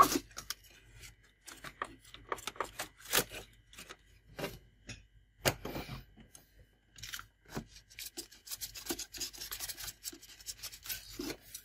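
Plastic parts click and rattle as a hand slides a printer carriage back and forth.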